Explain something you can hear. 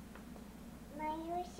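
A toddler makes a short high-pitched vocal sound close by.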